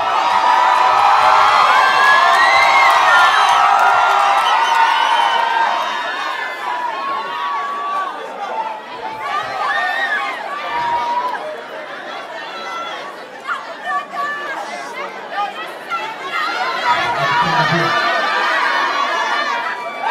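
A large crowd cheers and sings along loudly in a big echoing hall.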